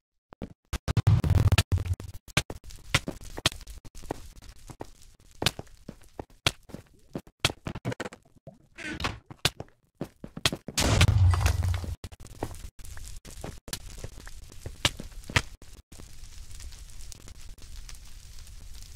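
Fire crackles and pops close by.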